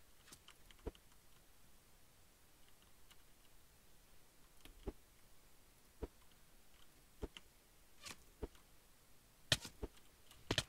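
A bow twangs as arrows are shot, a few times.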